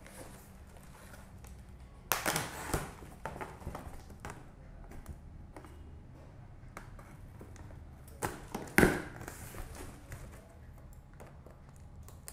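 Cardboard flaps rustle and thump as a box is opened.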